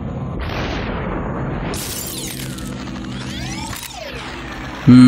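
Bodies shatter like glass with slowed, whooshing crashes.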